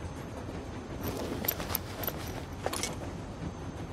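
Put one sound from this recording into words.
A bag rustles as it is rummaged through.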